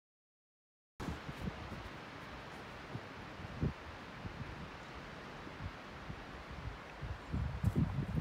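Wind gusts and rumbles against the microphone outdoors.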